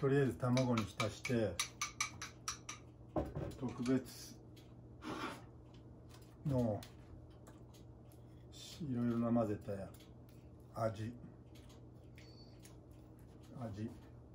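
A middle-aged man talks calmly and close by, pausing often.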